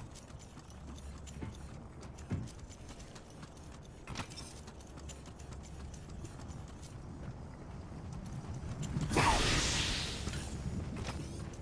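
Footsteps run over hard rock.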